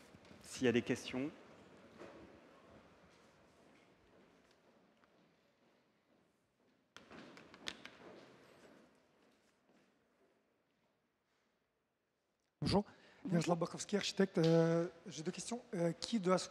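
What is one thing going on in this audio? A woman speaks into a microphone in a large echoing hall.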